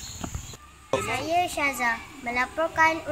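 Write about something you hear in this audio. A young girl speaks calmly and close by.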